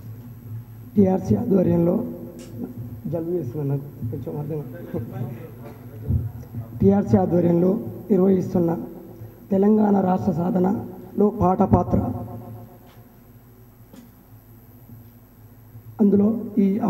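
A man speaks with animation into a microphone, heard through a loudspeaker.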